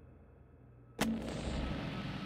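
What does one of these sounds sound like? A paper page flips over.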